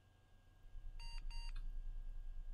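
A computer gives two short electronic beeps.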